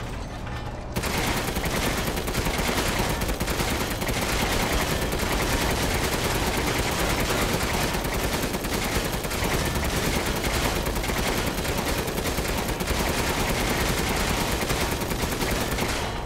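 A heavy machine gun fires in fast, continuous bursts.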